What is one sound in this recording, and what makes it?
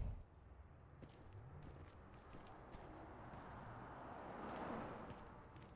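Footsteps shuffle slowly across a hard floor.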